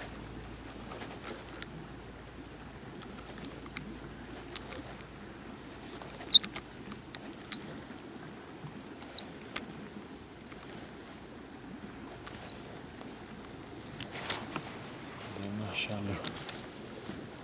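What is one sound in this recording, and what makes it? Small waves lap gently against a boat outdoors.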